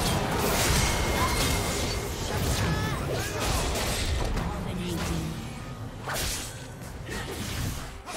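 Game spell effects crackle and blast in a busy battle.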